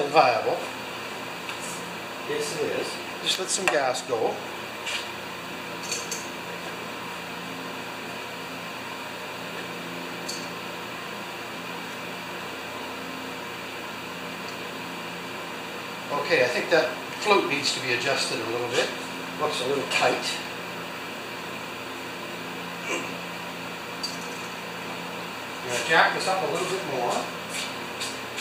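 An elderly man talks calmly.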